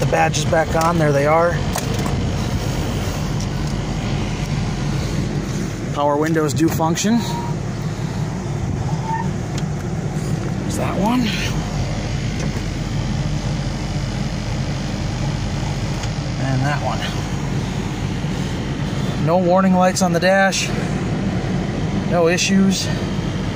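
A car engine idles with a steady low hum.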